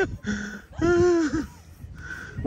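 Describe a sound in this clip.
A camel groans loudly close by.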